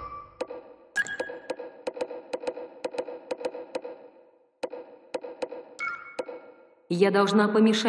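Menu selections click in quick succession.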